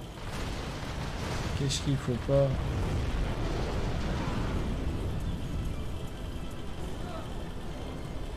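Large explosions boom and rumble heavily.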